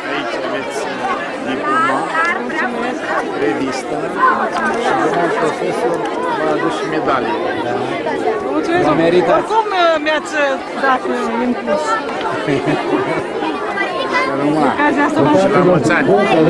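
A middle-aged woman speaks warmly close by.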